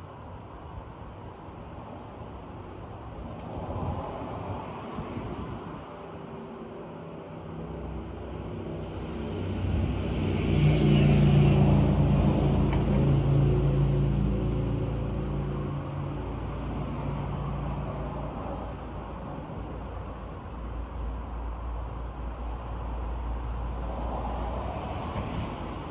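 Wind rustles through the leaves of tall trees outdoors.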